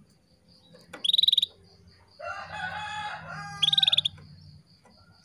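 A small bird sings loud, rapid trills close by.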